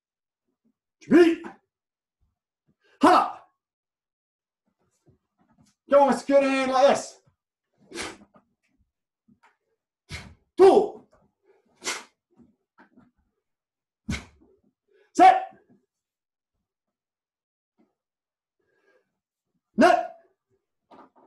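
A man gives short, sharp shouts.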